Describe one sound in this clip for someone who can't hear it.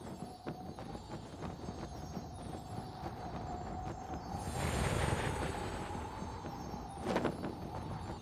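A small glider engine drones steadily.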